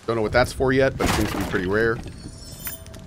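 Wooden debris crashes and splinters.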